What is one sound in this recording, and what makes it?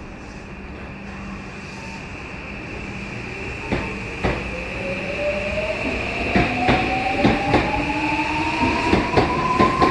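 A train's electric motors hum and whine, rising in pitch as the train pulls away.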